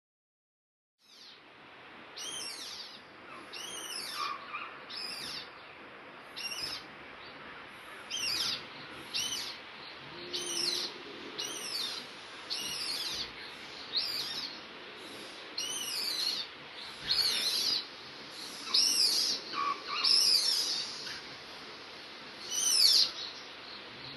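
An animal's paws pad softly across a metal roof.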